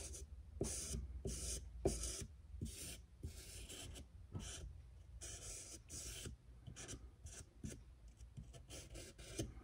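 A felt marker scratches across a hard surface in short, quick strokes.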